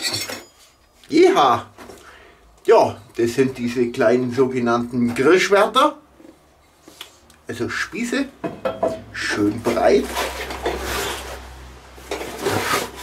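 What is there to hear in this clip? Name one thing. A middle-aged man talks with animation close by.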